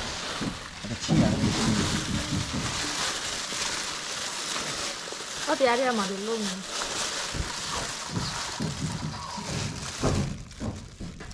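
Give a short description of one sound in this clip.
Hands squelch through wet noodles.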